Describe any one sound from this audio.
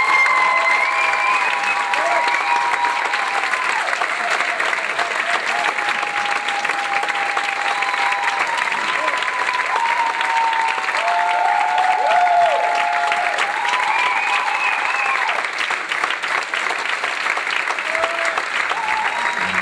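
A large audience claps loudly and steadily.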